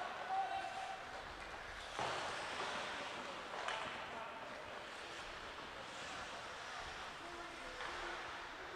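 Skate blades scrape and hiss across the ice in a large echoing rink.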